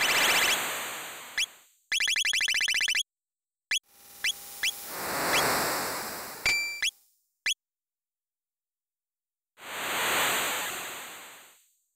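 A soft whooshing electronic swell rises and fades.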